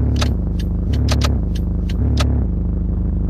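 Short clicks sound as a hand taps a tablet.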